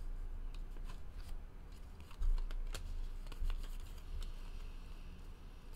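Trading cards click and rustle as they are shuffled by hand.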